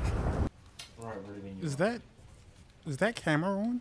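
A man speaks in a low, serious voice close by.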